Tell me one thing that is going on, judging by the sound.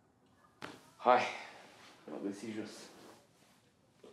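A second young man answers briefly and calmly.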